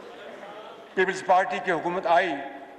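A man speaks through a microphone in a formal, raised voice.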